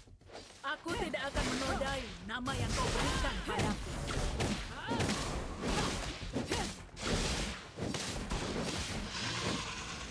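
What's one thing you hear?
Magic blasts whoosh and crash in quick bursts.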